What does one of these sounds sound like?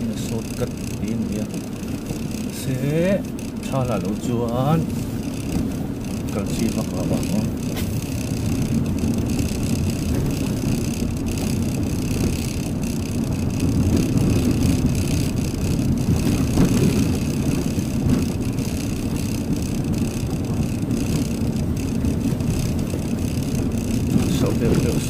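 A vehicle's engine hums steadily while driving.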